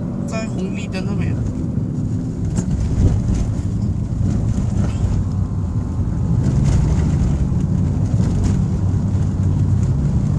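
A car rumbles low inside the cabin while driving.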